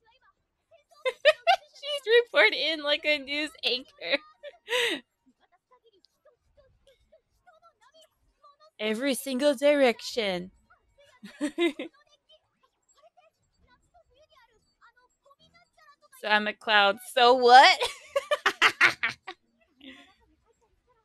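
A young woman talks with animation and laughs into a close microphone.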